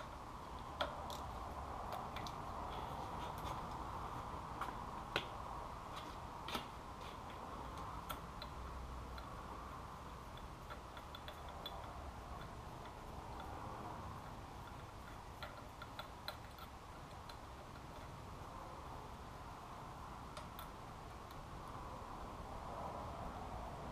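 Metal tools clink and tap against engine parts.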